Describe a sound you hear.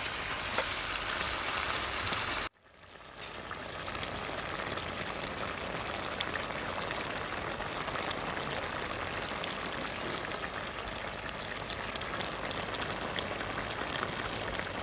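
Food sizzles and bubbles in a hot pan.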